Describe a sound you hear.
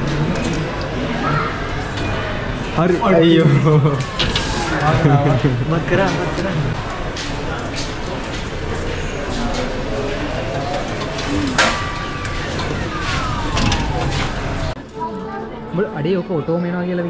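Claw machines play electronic jingles.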